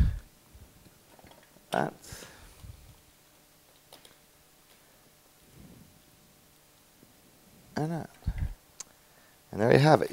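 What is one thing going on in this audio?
Glass clinks softly as a vase is handled.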